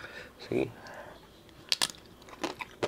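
A man bites and chews ice cream with wet mouth sounds.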